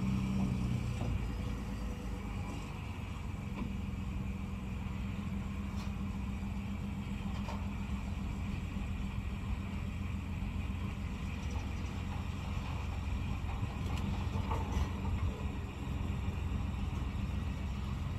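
A trailer's metal ramp creaks and clanks under a truck's wheels.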